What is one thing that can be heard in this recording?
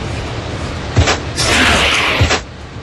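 A web shoots out with a sharp whoosh.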